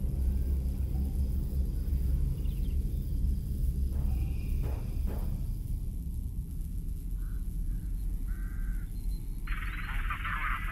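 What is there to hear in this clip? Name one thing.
Wind rumbles low and steady outdoors.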